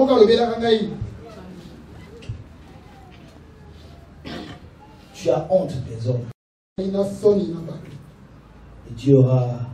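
A man speaks with animation through a microphone in an echoing hall, pausing often.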